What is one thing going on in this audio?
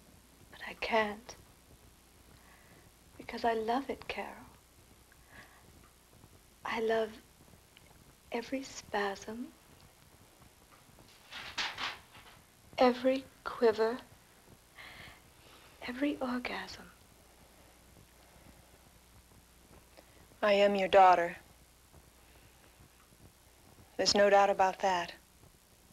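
A second woman answers softly, close by.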